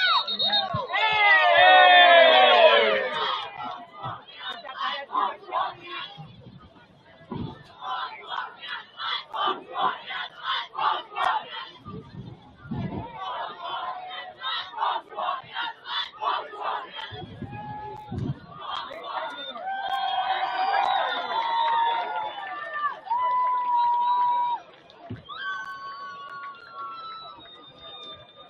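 Players on the sideline shout and call out outdoors.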